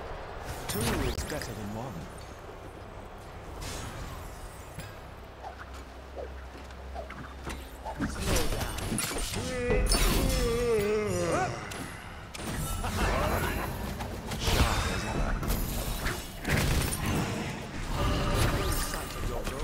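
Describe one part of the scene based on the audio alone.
Weapon hits and magic blasts crackle in a fight.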